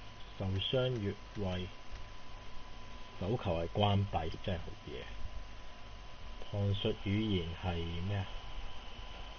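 A young man talks into a microphone in short bursts.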